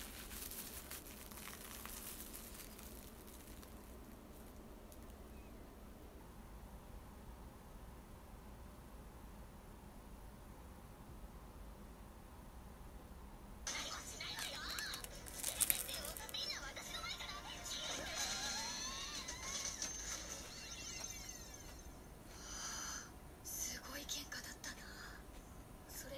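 Plastic wrap crinkles as hands handle a wrapped sandwich.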